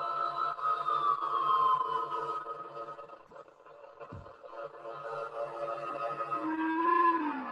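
A pulsing low electronic beat throbs in a steady rhythm.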